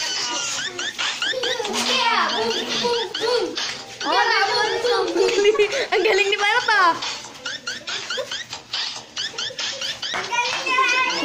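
Children shout and squeal excitedly close by.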